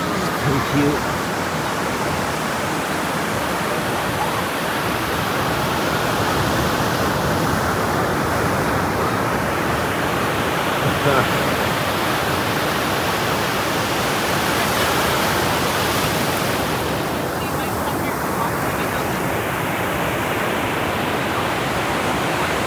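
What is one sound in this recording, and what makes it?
Waves break and wash onto a beach close by, steady and loud.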